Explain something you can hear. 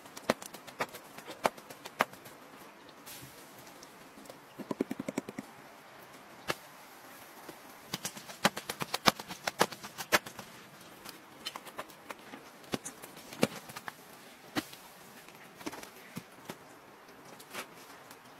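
Hands pat and slap soft dough.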